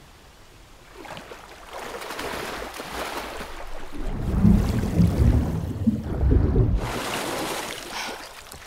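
Water splashes and swirls as a person wades and swims.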